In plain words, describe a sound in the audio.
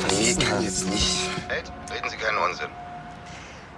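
A man speaks tensely over a phone line.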